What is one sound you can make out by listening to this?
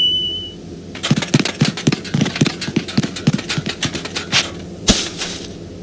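Soft footsteps patter quickly on a hard floor.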